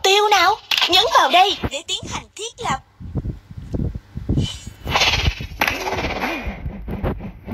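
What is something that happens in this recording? Sword strikes and magic blasts clash in a fight.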